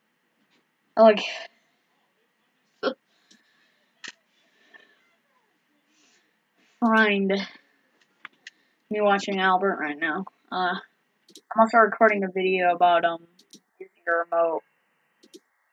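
A young boy talks animatedly close to a webcam microphone.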